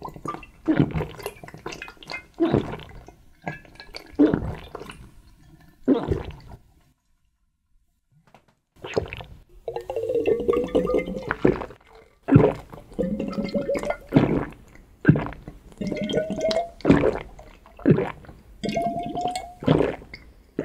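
A man gulps down a drink loudly, swallow after swallow.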